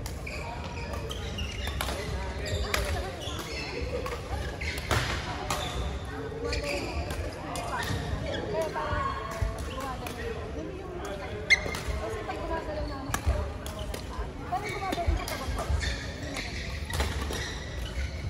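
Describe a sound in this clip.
Many voices chatter in a large echoing hall.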